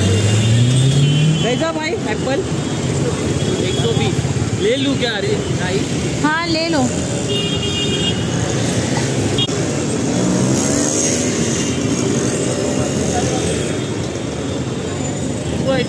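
A busy outdoor crowd murmurs and chatters all around.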